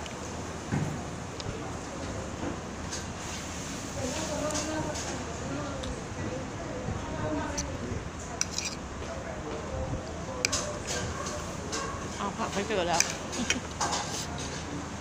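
A fork and spoon clink against a plate.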